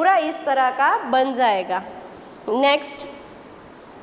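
A woman speaks clearly into a microphone, explaining.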